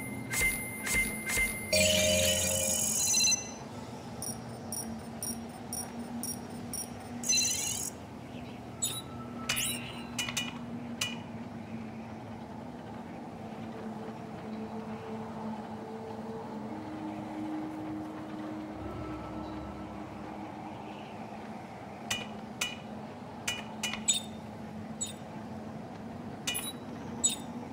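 Short electronic blips and clicks sound as menu choices change.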